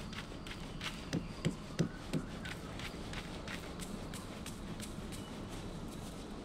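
Light footsteps patter quickly over soft ground.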